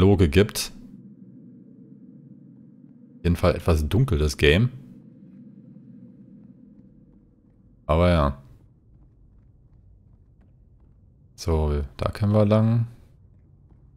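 A man talks in short bursts, close to a microphone.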